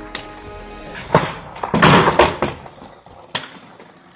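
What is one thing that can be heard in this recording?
A skateboard clatters on the ground.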